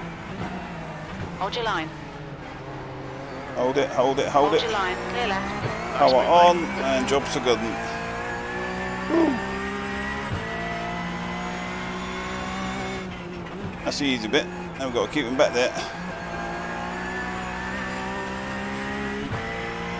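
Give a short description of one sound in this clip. A racing car engine drones steadily, rising and falling in pitch as it changes gear.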